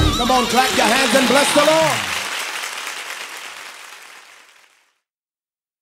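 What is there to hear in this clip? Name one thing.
A man sings with feeling into a microphone, then the singing fades away.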